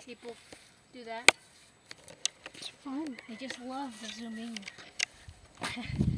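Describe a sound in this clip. A shovel scrapes and crunches into the soil.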